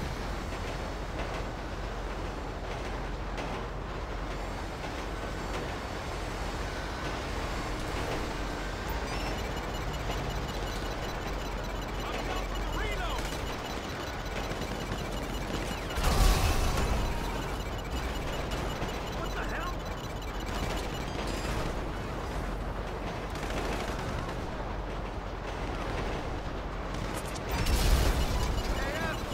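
A heavy train engine rumbles steadily along the tracks.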